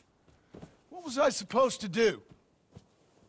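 A man answers defensively, close by.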